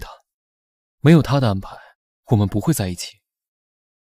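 A young woman speaks gently and close by.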